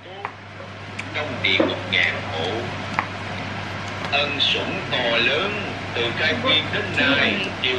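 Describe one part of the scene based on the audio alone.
A knife cuts through an orange on a cutting board.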